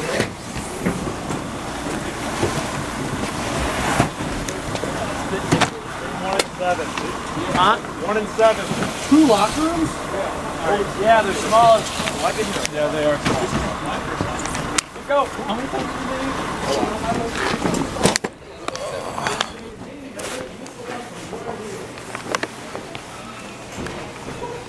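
Bags rustle and thump as they are carried.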